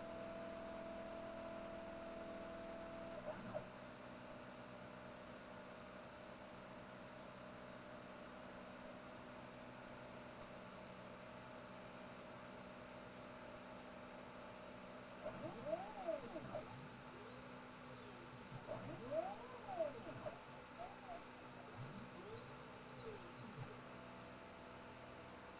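A machine hums steadily throughout.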